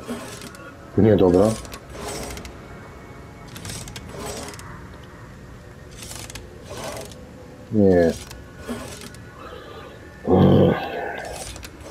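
Heavy metal rings creak and grind as they turn.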